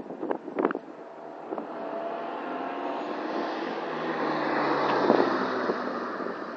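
A small racing car's engine roars as it approaches and passes close by.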